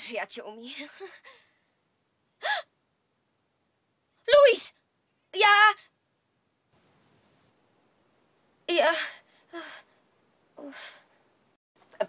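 A young woman speaks expressively into a close microphone in short bursts, with pauses between lines.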